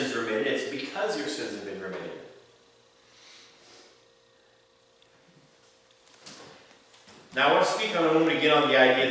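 A middle-aged man speaks steadily into a microphone, with a long pause in the middle.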